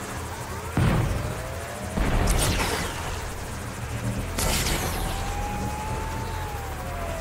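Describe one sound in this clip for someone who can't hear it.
A low electronic hum drones throughout.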